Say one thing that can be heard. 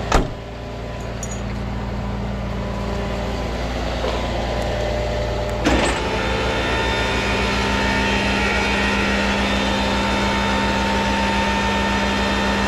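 An electric winch hums steadily as it pulls a car up a ramp.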